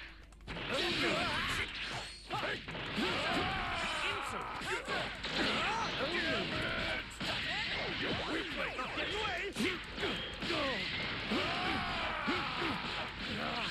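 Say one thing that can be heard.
Punches and blasts from a fighting game thud and crackle rapidly.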